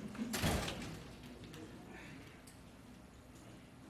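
A chair creaks softly as a man sits down.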